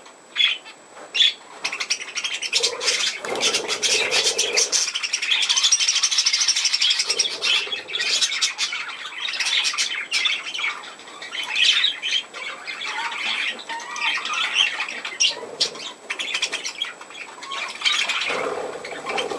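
Budgies chirp and chatter busily close by.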